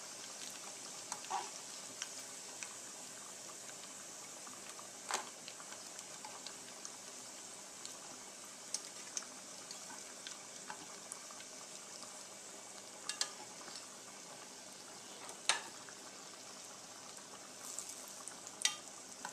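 Food sizzles and crackles in hot oil in a pan.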